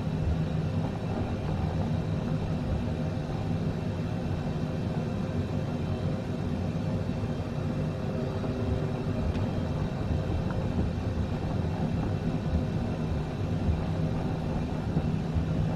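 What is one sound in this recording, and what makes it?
A propeller aircraft engine hums steadily at low power.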